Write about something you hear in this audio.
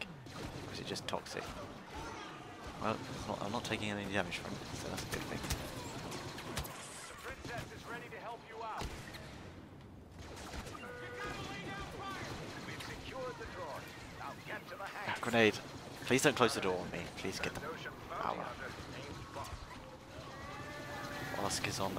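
Blaster rifles fire in rapid bursts of laser shots.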